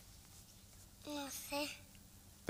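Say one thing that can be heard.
A young girl speaks briefly in a high voice.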